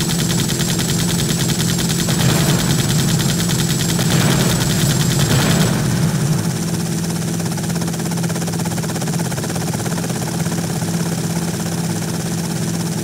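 A car engine drones.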